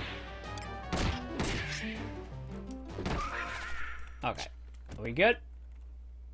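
Game combat sounds clash and ring.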